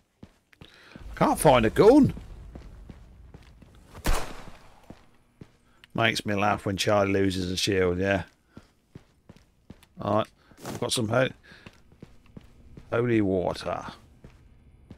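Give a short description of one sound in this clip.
An elderly man talks with animation into a close microphone.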